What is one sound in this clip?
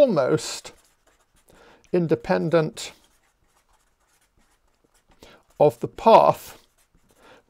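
An older man speaks calmly into a microphone, in short phrases with pauses.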